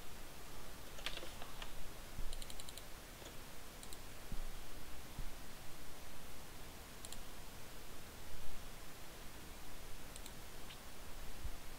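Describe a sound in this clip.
Soft interface clicks sound as menu buttons are pressed.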